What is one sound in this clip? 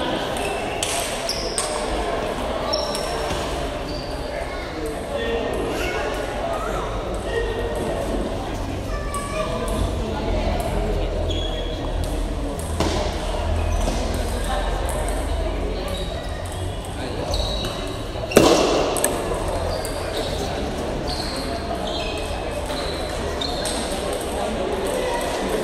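Players' shoes squeak on the floor.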